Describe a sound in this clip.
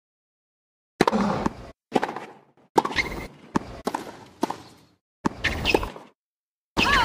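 Tennis rackets strike a ball back and forth with sharp pops.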